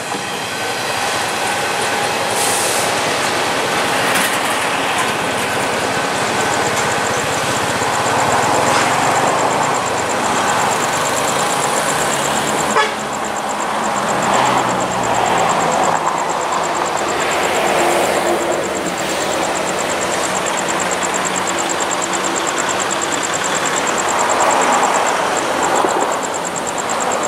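A train rumbles along the tracks as it approaches.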